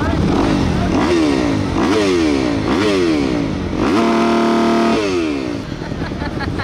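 A motorcycle engine revs up and down nearby.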